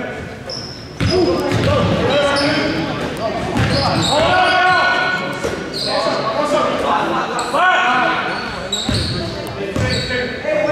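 Spectators and young players call out in an echoing gym.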